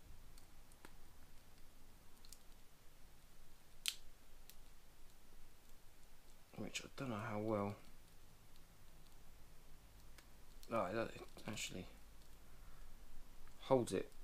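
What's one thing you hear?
Small plastic parts click softly in hands.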